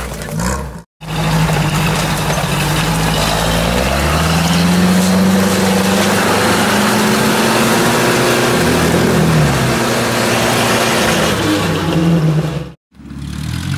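A UAZ-469 off-roader's engine revs hard in deep mud.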